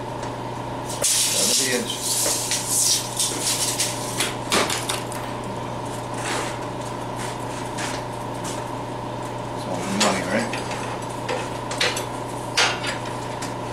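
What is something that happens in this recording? Steel bars clank and scrape against a metal table.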